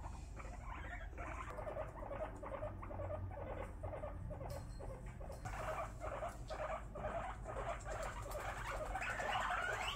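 Guinea pigs make soft rhythmic chirping purrs.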